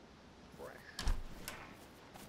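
A metal door swings open with a bang.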